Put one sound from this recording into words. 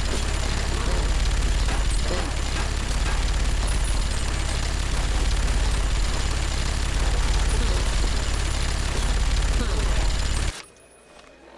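A minigun fires a long, roaring burst of rapid shots.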